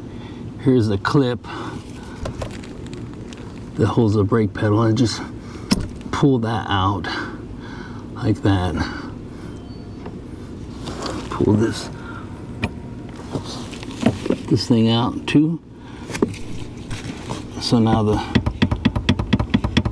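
Small plastic parts click and rattle as a connector is handled close by.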